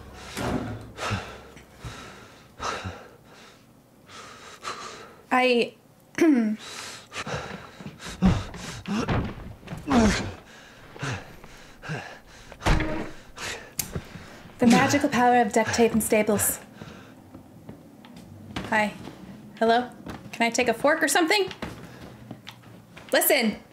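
A young woman talks and reacts with animation into a close microphone.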